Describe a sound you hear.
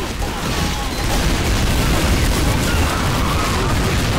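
Gunfire and explosions crack and boom in a video game battle.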